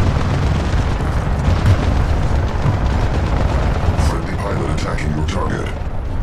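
A heavy machine rumbles deeply as it strides along.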